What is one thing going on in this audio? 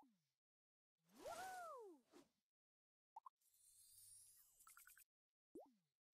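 Coins jingle with bright chimes.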